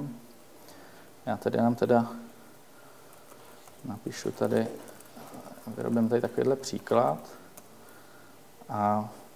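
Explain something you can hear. Fingers tap on a computer keyboard.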